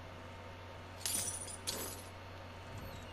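Bolt cutters snap through a metal chain with a sharp clank.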